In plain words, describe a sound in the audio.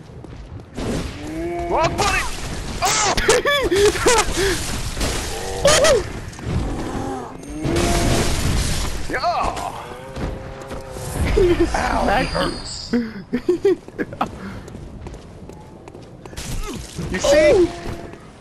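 A heavy blade slashes and thuds into flesh.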